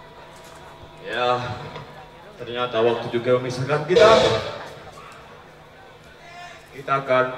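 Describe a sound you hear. A band plays amplified music on stage, with an electric bass guitar.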